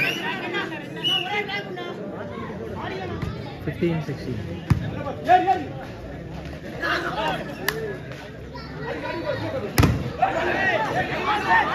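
A crowd of young men shout and cheer outdoors.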